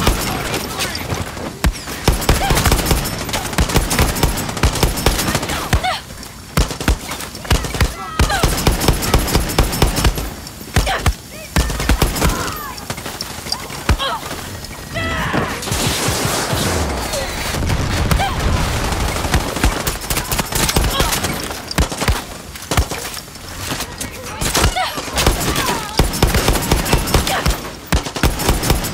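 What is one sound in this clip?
Rifle shots fire in rapid bursts.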